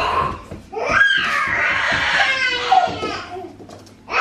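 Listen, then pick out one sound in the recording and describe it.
A young child shouts loudly indoors.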